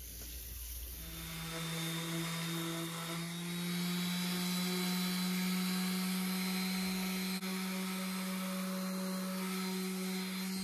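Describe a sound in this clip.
An electric sander hums steadily against wood.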